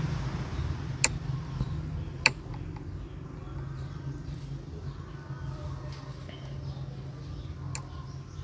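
Short game interface clicks sound as menus open.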